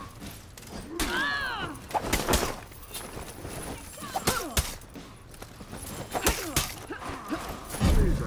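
Steel weapons clash and ring in sharp blows.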